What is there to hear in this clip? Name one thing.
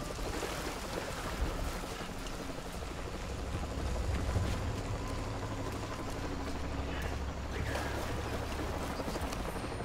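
Footsteps crunch through undergrowth.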